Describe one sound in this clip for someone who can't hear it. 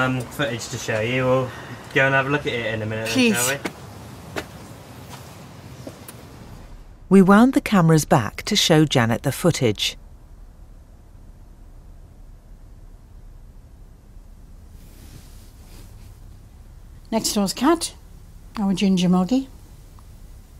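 An elderly woman talks calmly up close.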